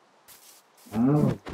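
A cow moos loudly.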